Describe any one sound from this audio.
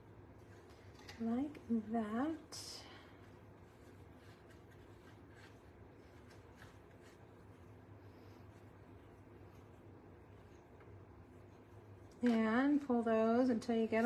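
A satin ribbon rustles softly as it is tied into a bow.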